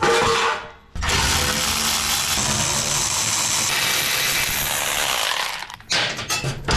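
A cordless impact driver whirrs and rattles as it drives a bolt.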